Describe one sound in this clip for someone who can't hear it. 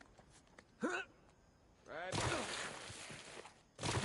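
A person lands with a heavy thud on rock after a jump.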